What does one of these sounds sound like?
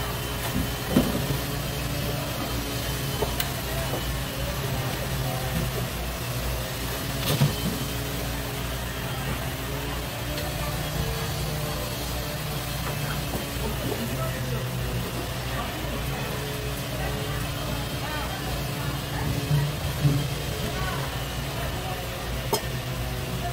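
A knife taps lightly on a wooden board.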